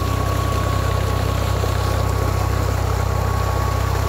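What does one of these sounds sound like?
Water gushes from a pipe and splashes into a pool.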